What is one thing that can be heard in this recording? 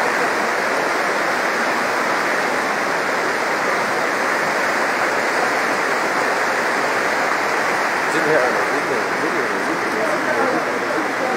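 Muddy floodwater rushes and churns loudly close by.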